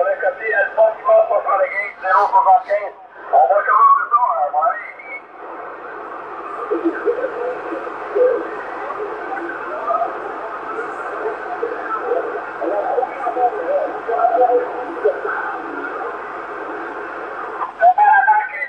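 A radio receiver hisses and crackles with static.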